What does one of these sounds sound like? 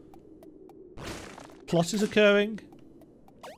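A sharp hit sound rings out as a blow strikes.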